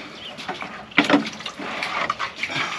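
Water splashes in a bucket.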